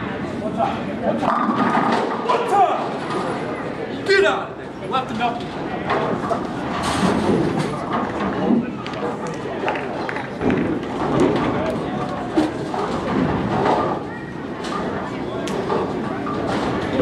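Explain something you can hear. Balls rumble down lanes and pins crash in the distance, in a large echoing hall.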